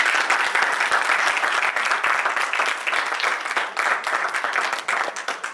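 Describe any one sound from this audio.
An audience claps and cheers loudly close by.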